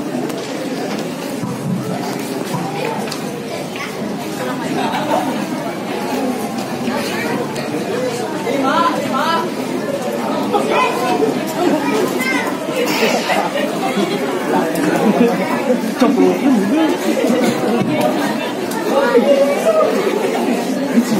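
A crowd of men and women chatters nearby in a room.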